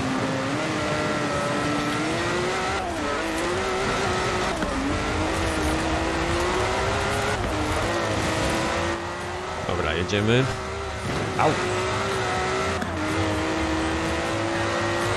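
A sports car engine roars steadily, climbing in pitch between gear changes.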